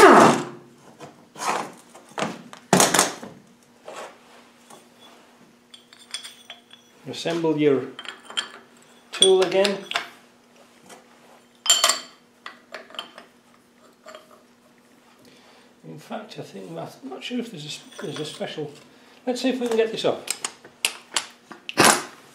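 Metal parts clink and knock as a gearbox is handled.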